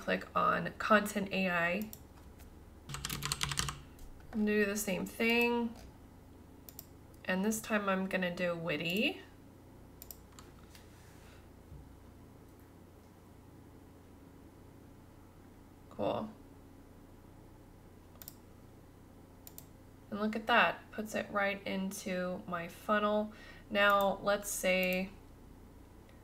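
A young woman talks calmly into a close microphone, pausing now and then.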